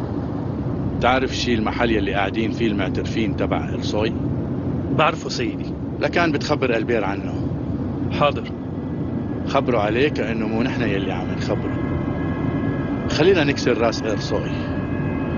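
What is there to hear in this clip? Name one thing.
A middle-aged man speaks tensely, close by.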